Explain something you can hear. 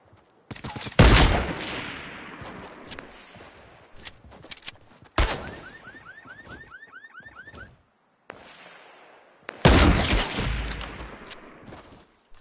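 A sniper rifle fires loud, echoing shots.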